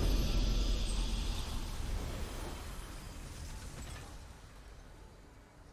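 A triumphant game victory sound rings out and slowly fades.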